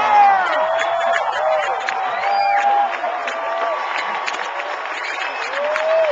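A crowd of young women screams and cheers loudly close by.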